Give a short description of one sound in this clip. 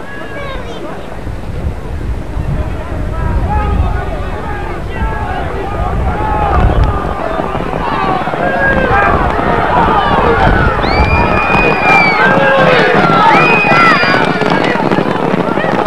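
A crowd of spectators shouts and cheers, growing louder and more excited.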